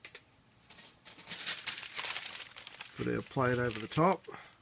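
Thin paper rustles and crinkles.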